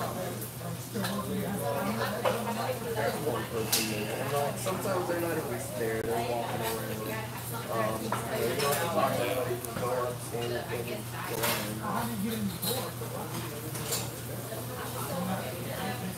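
A man talks calmly, close by.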